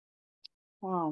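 A young woman starts speaking over an online call.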